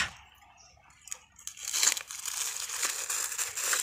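A plastic bag crinkles and rustles under a hand.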